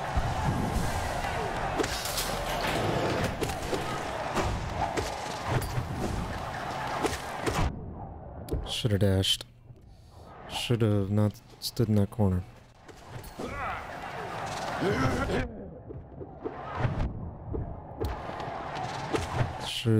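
Sword slashes and impacts clash in a fast fight.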